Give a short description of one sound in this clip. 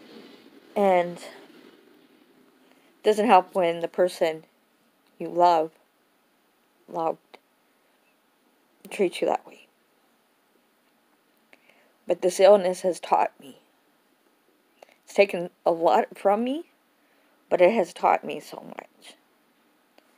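A middle-aged woman talks close to a phone's microphone, calmly, with pauses.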